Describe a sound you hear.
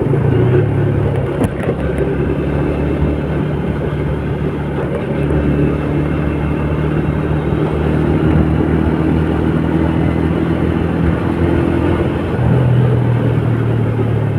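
A scooter engine hums steadily at speed.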